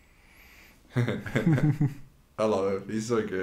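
Two young men laugh.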